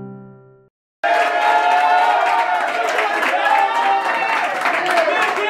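Young men clap their hands.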